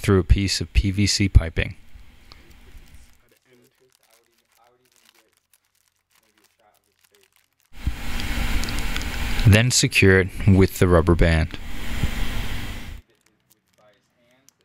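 A plastic bag crinkles and rustles as it is twisted and tied.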